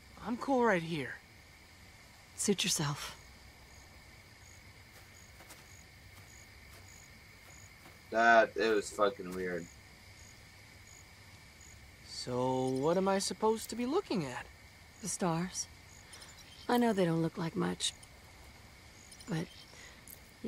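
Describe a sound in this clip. A young man talks in short bursts, close to a microphone.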